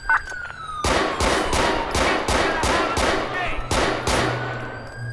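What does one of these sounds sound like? Gunshots fire rapidly in a quick series.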